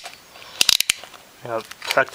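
A rotary switch clicks as it is turned.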